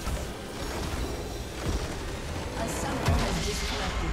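Magic spells crackle and clash in a video game fight.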